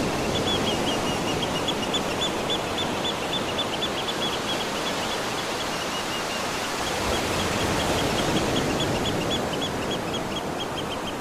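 Waves break and wash over the shore close by.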